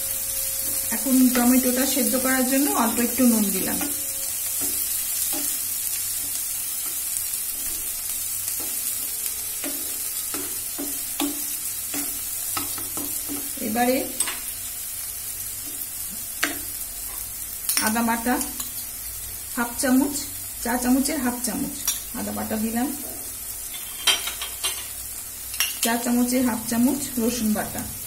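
Food sizzles softly in a hot pan.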